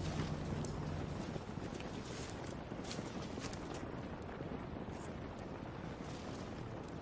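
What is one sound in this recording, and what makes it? Leaves and branches rustle as someone pushes through dense bushes.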